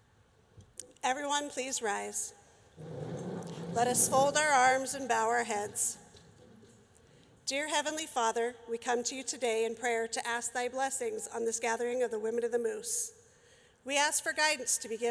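A woman speaks emotionally into a microphone in a large hall.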